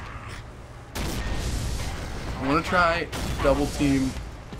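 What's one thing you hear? An explosion booms and fire roars close by.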